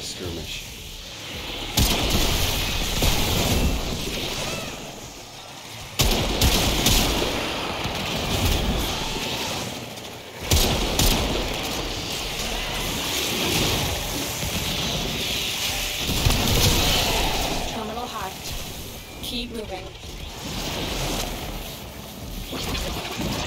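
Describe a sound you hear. Video game gunfire and energy blasts crackle and boom loudly.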